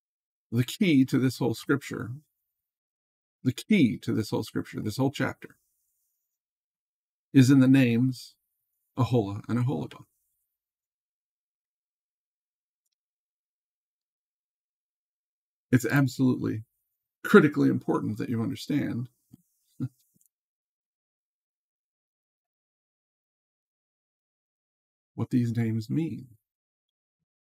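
A middle-aged man speaks calmly and closely into a microphone, in short bursts with long pauses.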